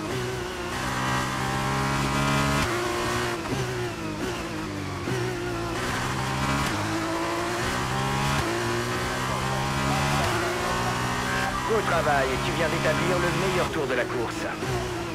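A racing car engine roars, rising in pitch through each gear and dropping sharply at each gear change.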